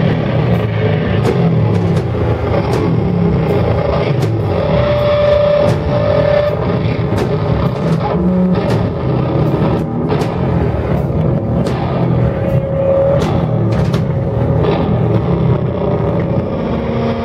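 Drums pound and cymbals crash quickly.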